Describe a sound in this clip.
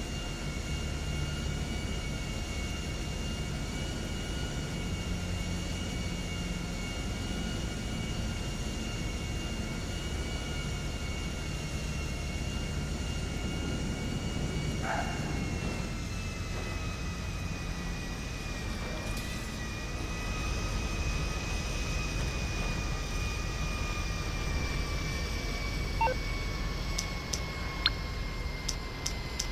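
The jet engines of a twin-engine business jet whine, with the pitch slowly dropping as the jet lands.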